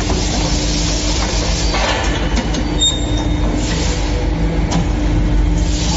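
A press closes with a heavy mechanical thud.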